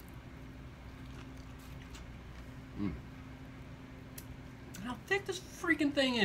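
A man chews and smacks his lips while eating.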